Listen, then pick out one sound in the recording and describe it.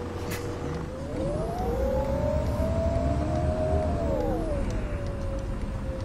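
A bus engine revs up and then eases off as the bus pulls away.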